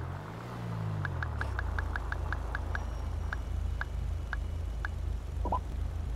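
A phone beeps as its keys are pressed.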